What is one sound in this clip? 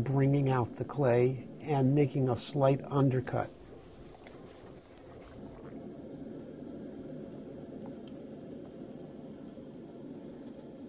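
Wet clay rubs and squelches under hands.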